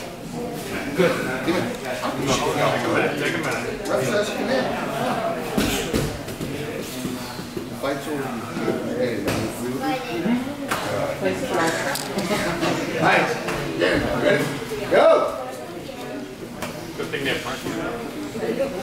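Several men talk and call out nearby in an echoing room.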